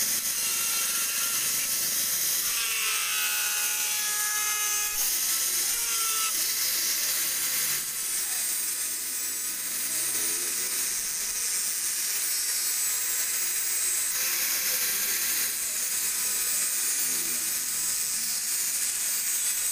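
An angle grinder whines steadily at high speed close by.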